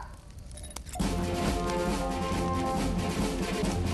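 Upbeat dance music plays.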